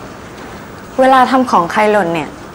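A young woman speaks with surprise.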